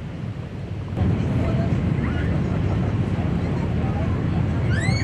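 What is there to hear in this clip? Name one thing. Wind blows across a boat's open deck.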